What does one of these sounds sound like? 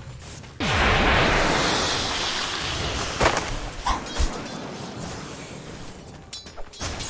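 Game spells burst and crackle in a fight.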